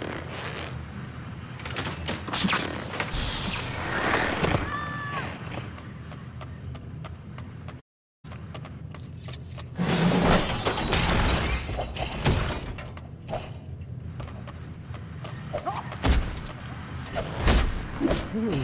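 Game sound effects clatter and chime.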